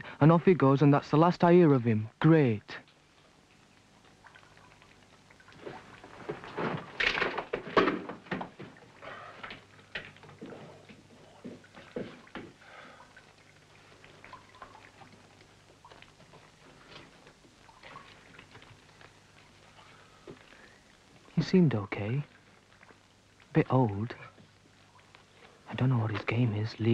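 A man speaks in short, loud bursts.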